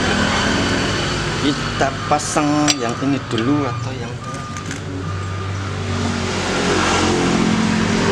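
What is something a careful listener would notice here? Metal parts of a motorcycle clink and knock.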